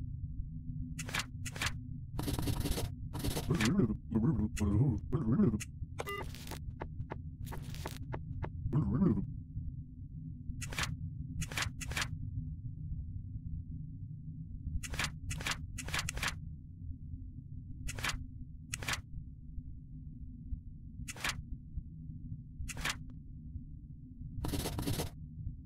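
Short soft clicks sound now and then as game menus open and close.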